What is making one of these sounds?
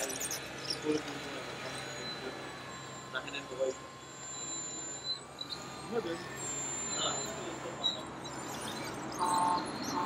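Dirt crunches and scrapes against a bulldozer blade.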